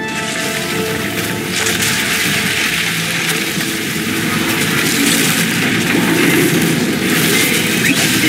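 Strong wind howls in a snowstorm.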